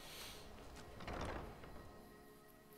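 A heavy wooden door opens with a thud.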